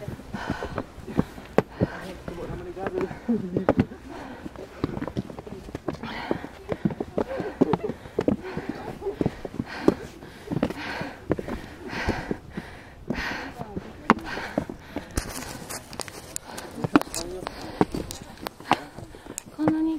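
Footsteps scuff and tap on stone steps.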